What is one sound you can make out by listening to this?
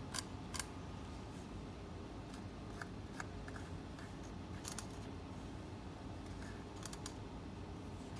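A pencil scratches and taps on wood close by.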